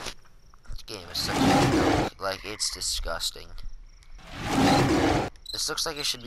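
A tiger roars with a deep, rough snarl.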